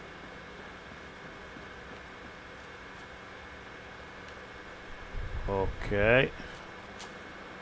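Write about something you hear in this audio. Footsteps walk over rough ground.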